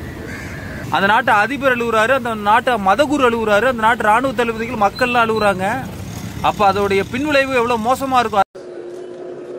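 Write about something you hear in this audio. An elderly man speaks close by with animation.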